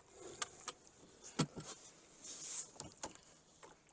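A wooden oar knocks against a boat's side.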